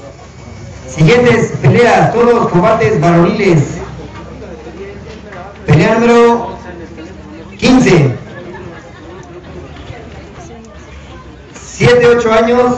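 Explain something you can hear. A young man reads out loudly through a microphone and loudspeaker outdoors, in short bursts with pauses.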